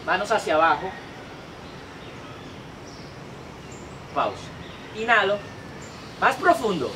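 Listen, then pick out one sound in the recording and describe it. A young man speaks calmly and clearly, close by outdoors.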